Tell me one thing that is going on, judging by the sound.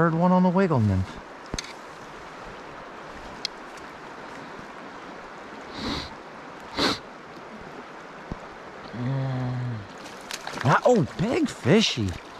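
A shallow river flows and ripples steadily.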